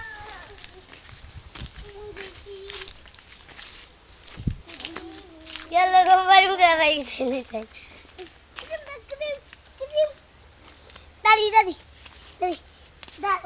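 Small bare feet patter on a dirt path.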